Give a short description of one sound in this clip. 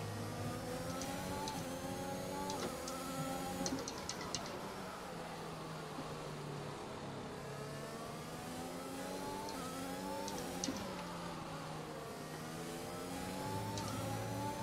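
A racing car engine revs high, rising through the gears and dropping as it slows for corners.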